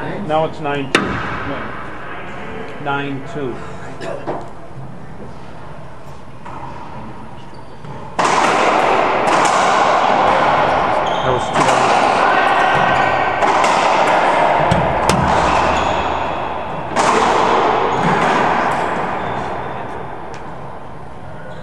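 A racquetball smacks hard against the walls in a large echoing court.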